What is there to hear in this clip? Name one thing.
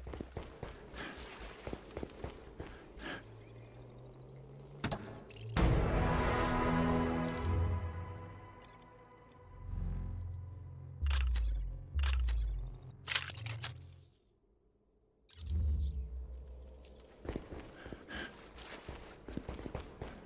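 Footsteps patter on stone floors.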